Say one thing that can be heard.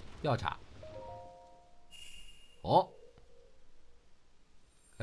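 A bright magical chime rings.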